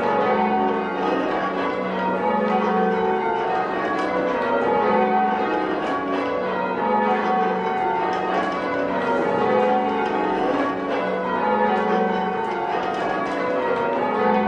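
Church bells ring out loudly in a steady, repeating sequence.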